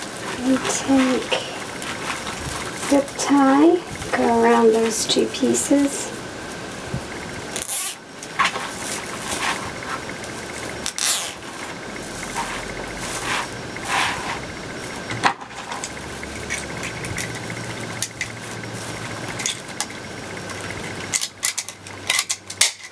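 Plastic mesh rustles and crinkles as hands bunch it.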